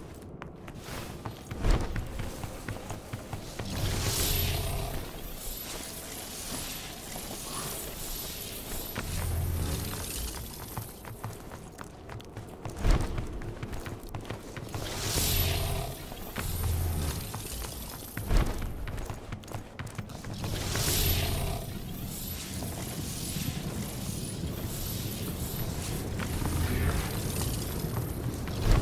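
Footsteps crunch steadily on rough, rocky ground.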